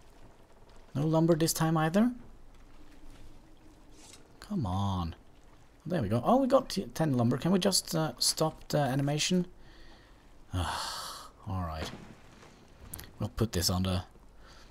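A man speaks nearby in a calm, firm voice.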